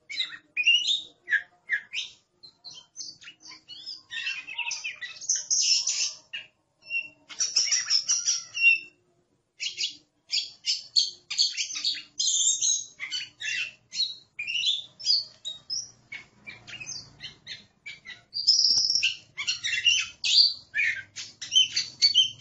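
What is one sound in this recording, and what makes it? A songbird sings a varied, rapid song of whistles and chirps close by.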